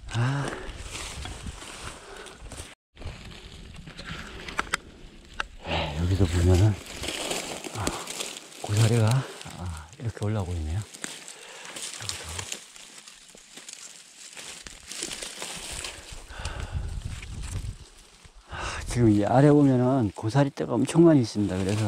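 Dry leaves and twigs rustle and crackle underfoot.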